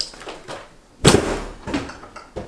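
A door slams shut with a bang.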